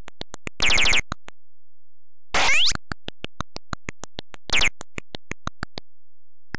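Blippy electronic footstep beeps tick rapidly from a retro video game.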